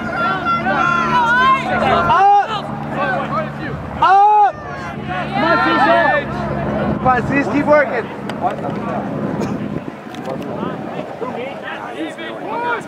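Players call out to one another across an open field.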